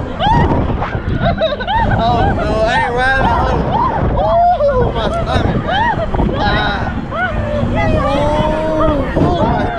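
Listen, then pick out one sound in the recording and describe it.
Wind rushes past on a fast-moving ride.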